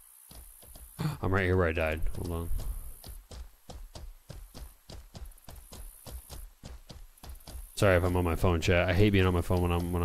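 A man speaks animatedly into a close microphone.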